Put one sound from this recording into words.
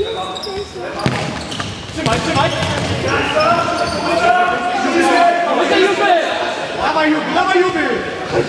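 A ball is kicked with sharp thumps on a hard indoor floor.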